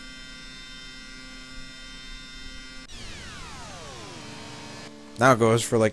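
Electronic video game tones hum steadily, then slide downward in pitch.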